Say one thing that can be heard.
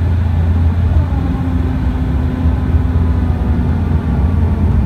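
Landing gear whirs as it lowers.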